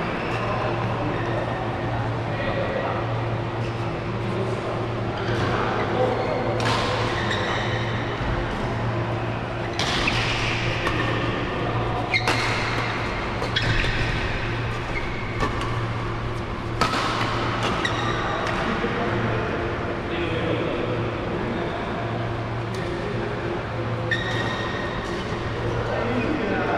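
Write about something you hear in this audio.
Rackets smack a shuttlecock back and forth in a large echoing hall.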